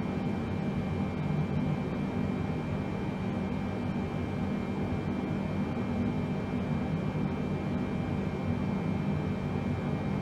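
Jet engines drone steadily, heard from inside an aircraft.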